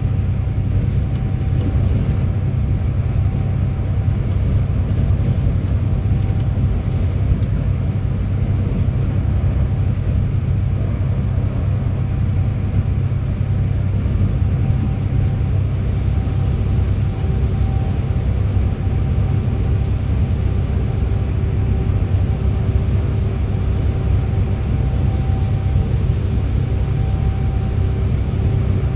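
A bus engine rumbles low and steady from inside the cabin.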